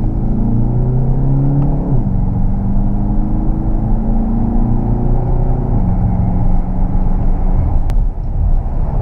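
A car engine hums from inside the cabin, rising in pitch and dropping back as the gears change.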